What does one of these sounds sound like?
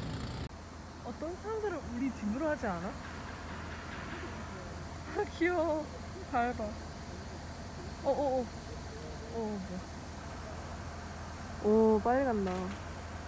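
Ducks quack on the water.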